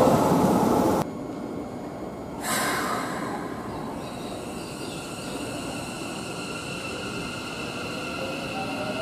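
A stopped train hums steadily.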